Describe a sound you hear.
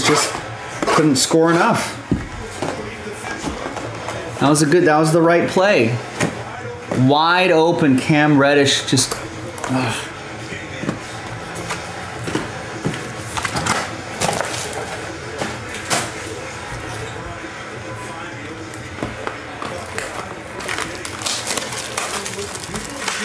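Cardboard boxes slide and tap against each other as they are handled.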